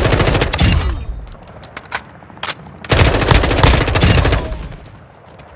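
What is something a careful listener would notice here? A rifle fires loud rapid bursts of shots.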